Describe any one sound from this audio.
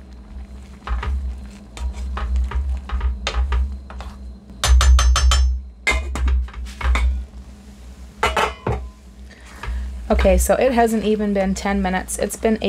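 A spatula scrapes and taps against a metal pan.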